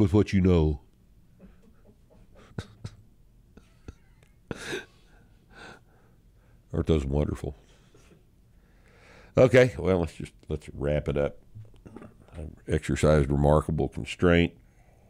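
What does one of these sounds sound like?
A middle-aged man speaks with animation into a close microphone.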